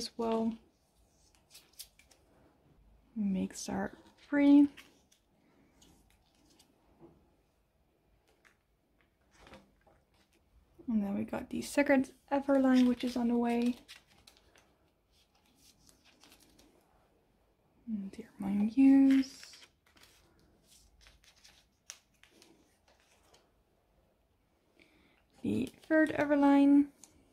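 Plastic sleeves crinkle and rustle as cards slide into them.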